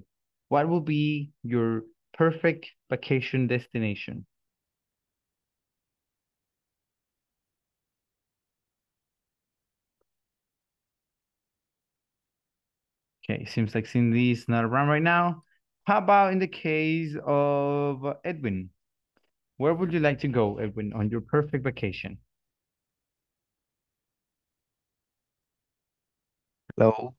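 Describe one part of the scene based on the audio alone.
A man speaks into a headset microphone over an online call, calmly and with pauses.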